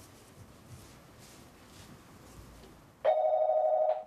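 Cloth rustles softly as it is handled.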